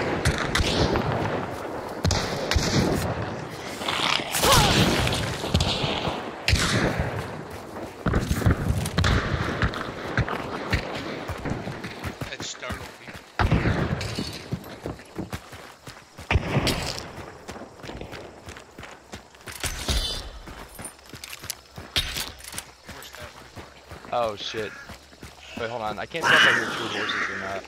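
Footsteps crunch and squelch over dirt and mud.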